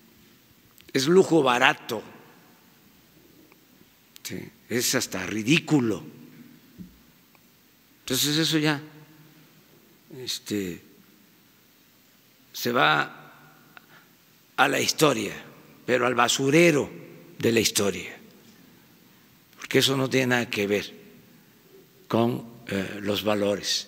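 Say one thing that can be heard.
An elderly man speaks firmly into a microphone, in short phrases with pauses.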